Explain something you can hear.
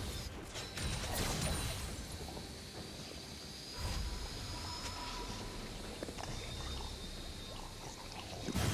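Video game spell and hit effects whoosh and clang.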